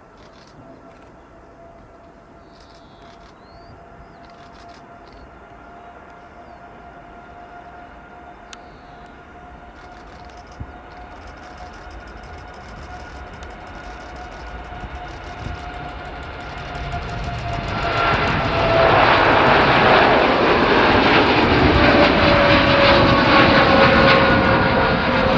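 A jet airliner's engines whine and roar, growing louder as it speeds down the runway and climbs away.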